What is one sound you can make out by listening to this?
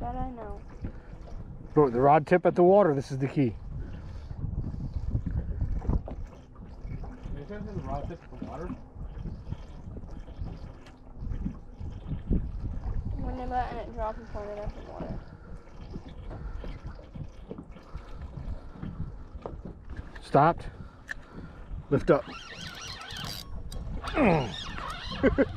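Small waves lap and slosh against a boat's hull.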